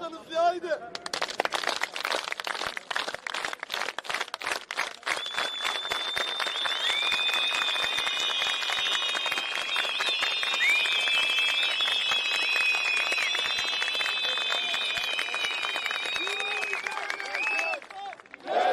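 A large crowd claps rapidly.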